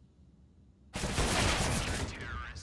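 A loud rifle shot rings out.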